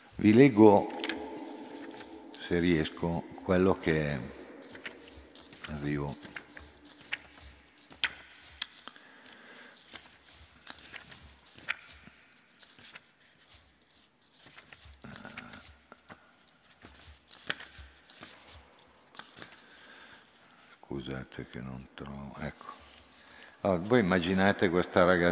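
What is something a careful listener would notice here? An elderly man reads aloud calmly into a microphone in a large echoing hall.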